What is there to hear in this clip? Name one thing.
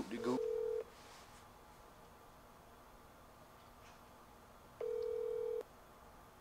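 A handheld device gives a long, steady beep twice.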